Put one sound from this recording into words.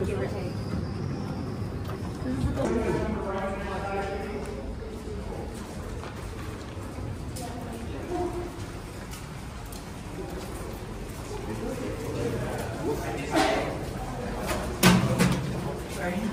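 Footsteps shuffle along a hard floor.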